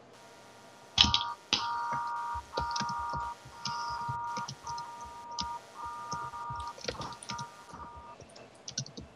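A police siren yelps in short, repeated bursts.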